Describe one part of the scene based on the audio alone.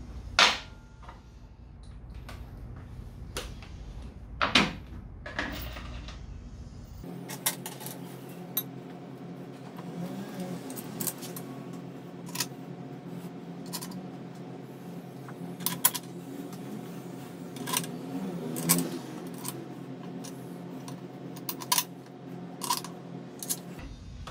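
Metal tools clink and clatter.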